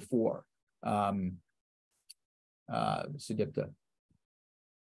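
A man speaks calmly into a microphone, lecturing in short phrases.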